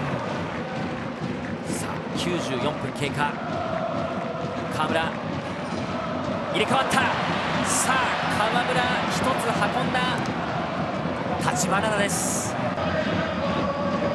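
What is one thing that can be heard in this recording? A large stadium crowd roars and chants steadily outdoors.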